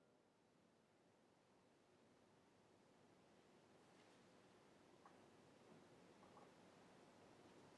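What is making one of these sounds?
A piano plays softly in a large echoing hall.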